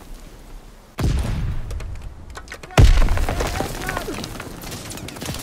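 Loud explosions boom close by, then rumble away.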